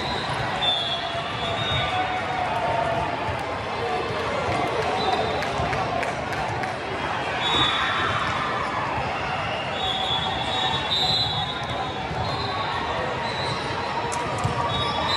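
A ball is struck with sharp slaps.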